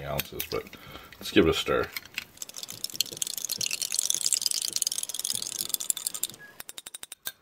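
A spoon stirs liquid in a glass.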